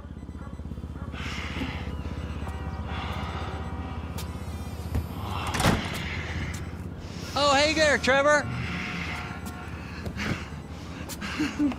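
A man grunts and groans with effort.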